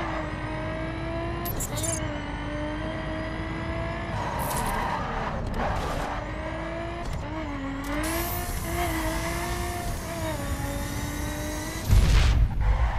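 A race car engine roars at high revs, its pitch rising and falling with gear shifts.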